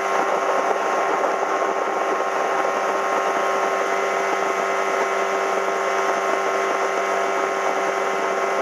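A boat's engine drones steadily at speed.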